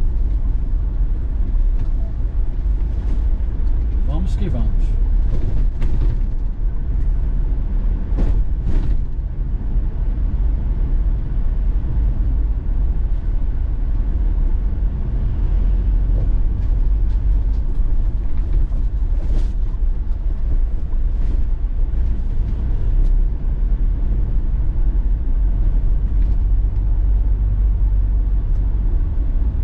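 Tyres rumble over a rough street.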